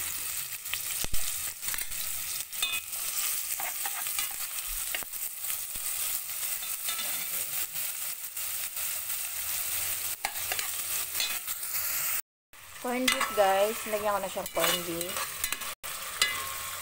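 A metal spoon scrapes and knocks against a pot.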